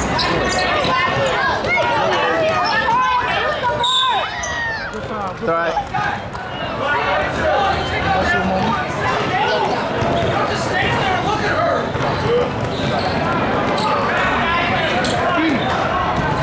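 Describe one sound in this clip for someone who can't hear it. A ball bounces on the court.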